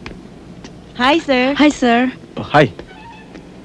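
A young woman speaks nearby with animation.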